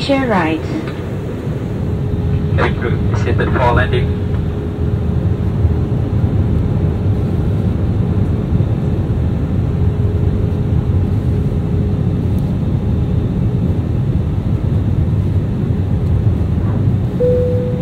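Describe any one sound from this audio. Jet engines roar steadily in a loud, low rumble inside an aircraft cabin.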